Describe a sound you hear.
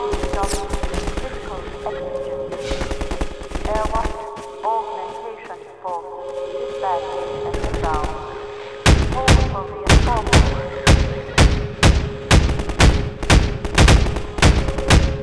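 A young man talks into a close microphone.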